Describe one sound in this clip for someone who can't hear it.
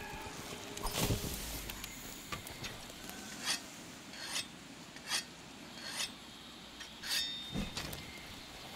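A blade swings and slices through the air with sharp whooshes.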